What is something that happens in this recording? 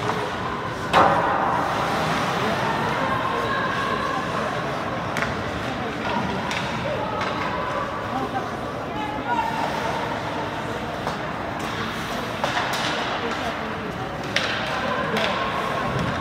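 Hockey sticks clack against a puck in sharp knocks.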